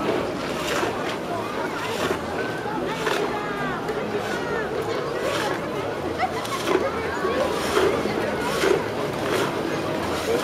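Water flows and splashes along a shallow stream.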